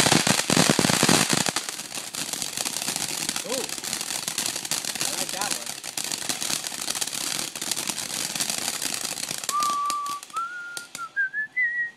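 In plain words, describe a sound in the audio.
A ground firework fountain hisses and crackles loudly.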